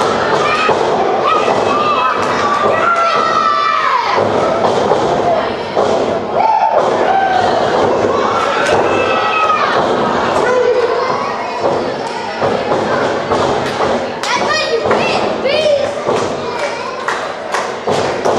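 Spectators cheer and whoop loudly.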